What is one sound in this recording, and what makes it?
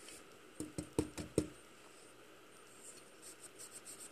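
A small wire brush scrubs against metal in quick strokes.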